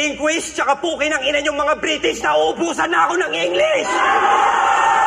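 A man raps into a microphone.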